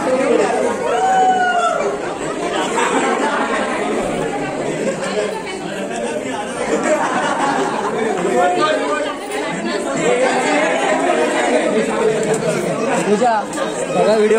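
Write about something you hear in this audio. Many people chatter nearby.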